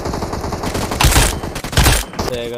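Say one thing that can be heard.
A gun fires a short burst of shots.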